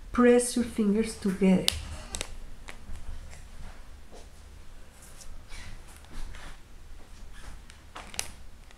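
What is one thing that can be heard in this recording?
Stiff paper rustles and crinkles as fingers flap a folded shape.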